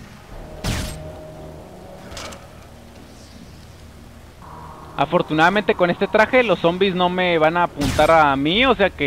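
A sniper rifle fires a sharp shot.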